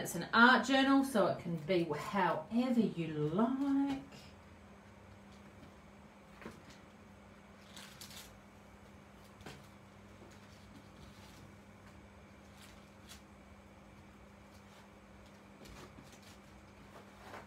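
A plastic stencil rustles as it is lifted and laid down.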